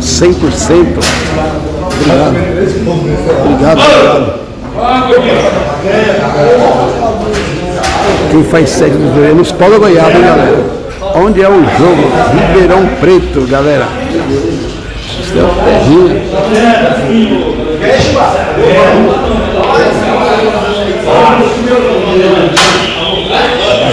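Several men talk and chatter nearby.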